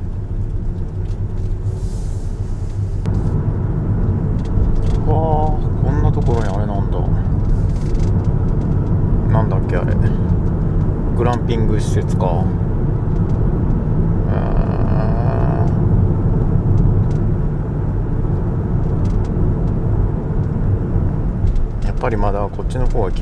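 A car engine hums steadily as the car drives along.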